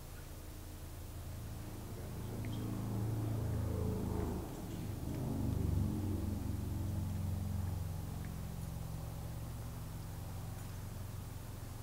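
A young woman speaks quietly into a microphone.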